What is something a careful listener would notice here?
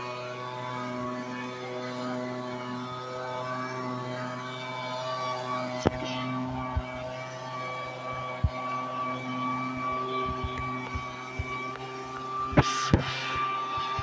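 A leaf blower whines steadily close by.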